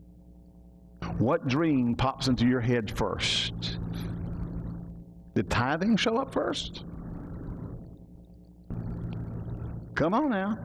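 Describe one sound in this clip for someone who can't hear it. A middle-aged man speaks loudly and with animation through a microphone in an echoing room.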